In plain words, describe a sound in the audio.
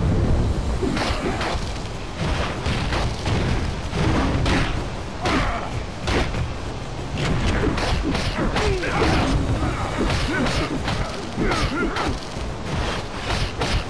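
Punches and kicks land with repeated sharp thuds.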